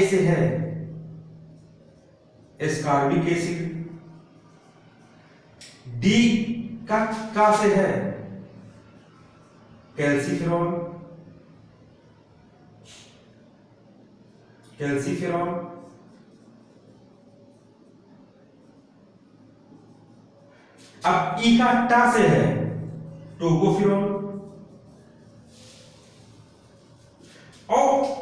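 A man speaks calmly and clearly in short bursts, close by.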